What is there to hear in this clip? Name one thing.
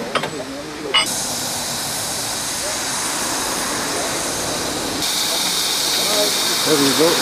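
A steam locomotive puffs steadily at a distance.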